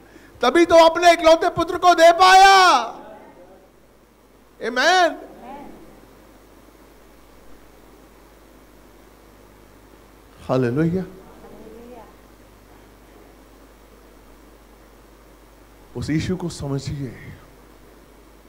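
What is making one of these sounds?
A middle-aged man speaks with animation into a microphone, heard through loudspeakers in an echoing room.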